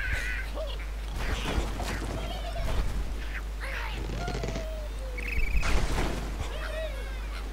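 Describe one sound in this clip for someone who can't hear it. Blocks crash and clatter in a video game.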